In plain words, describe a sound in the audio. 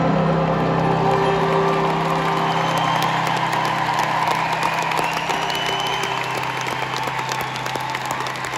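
Music plays loudly through big loudspeakers and fades out.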